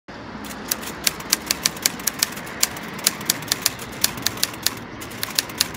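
Shoes tap on a paved sidewalk with quick steps.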